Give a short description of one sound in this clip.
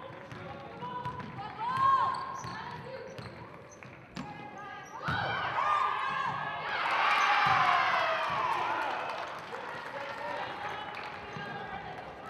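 Sneakers squeak sharply on a hardwood floor in an echoing gym.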